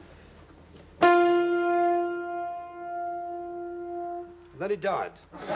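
A piano note rings out and holds before cutting off.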